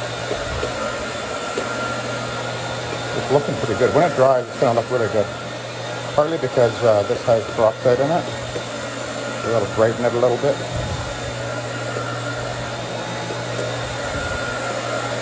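A floor polishing machine hums steadily as its pad spins over carpet.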